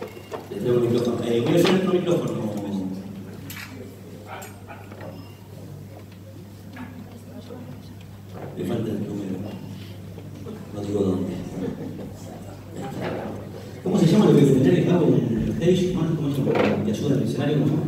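A man sings loudly through a microphone in a large hall.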